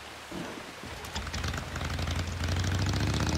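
A motorcycle engine roars as the bike pulls away.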